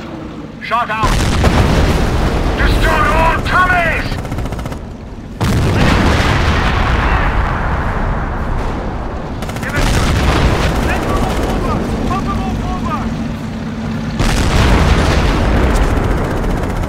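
Explosions boom and gunfire crackles in a distant battle.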